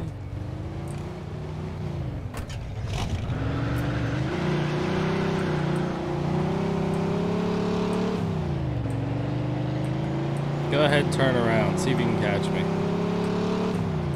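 A car engine hums and revs steadily as the car drives.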